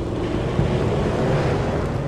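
A road flare hisses and sputters as it burns.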